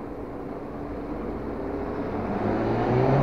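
A car approaches and grows louder.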